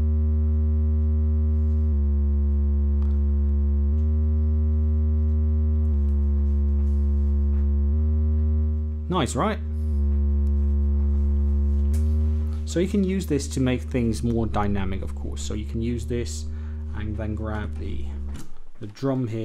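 A synthesizer plays a low, steady buzzing drone that changes note every couple of seconds.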